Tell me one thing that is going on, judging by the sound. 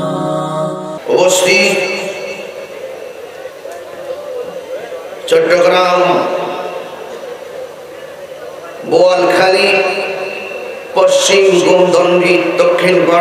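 A young man chants in a drawn-out melodic voice through a microphone and loudspeakers.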